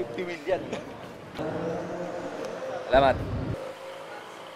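Men talk and laugh close by.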